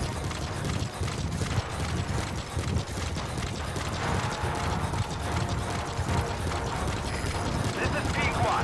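Footsteps thud quickly on dirt and gravel.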